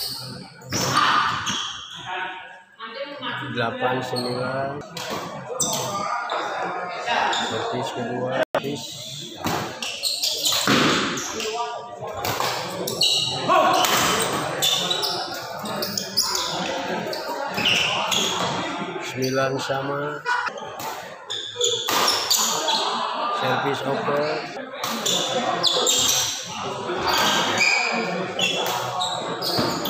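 Men call out and talk during play.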